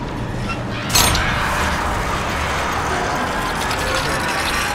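Metal crashes and grinds.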